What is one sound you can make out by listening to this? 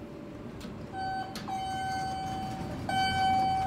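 An elevator chime rings with a steady bright tone.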